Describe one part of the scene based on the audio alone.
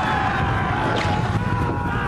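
A crowd of men roars as they charge in battle.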